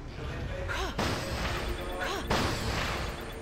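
Wooden crates smash and shatter.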